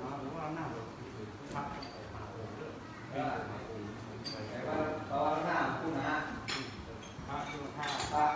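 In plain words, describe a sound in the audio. Several men talk quietly nearby in a crowd.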